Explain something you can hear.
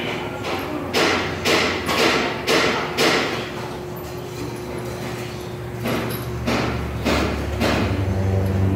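A pneumatic wrench whirs in short bursts at a car wheel nearby.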